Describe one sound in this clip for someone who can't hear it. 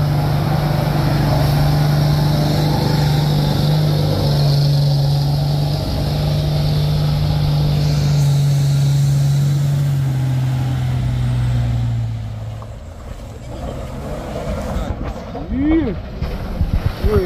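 Tyres crunch over a rough dirt road.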